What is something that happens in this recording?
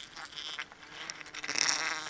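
A plastic sack crinkles and rustles close by.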